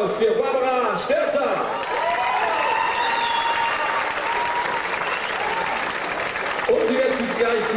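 A big band plays a lively jazz tune.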